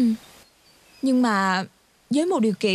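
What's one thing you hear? A young woman speaks quietly and anxiously nearby.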